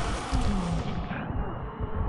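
An energy blast bursts with a loud crackling whoosh.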